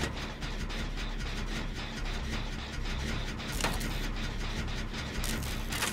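A generator engine rattles and clanks with quick, repeated metallic ticks as it is being repaired.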